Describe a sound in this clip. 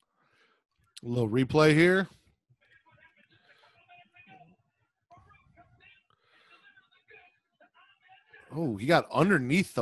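A second man talks through a headset microphone on an online call.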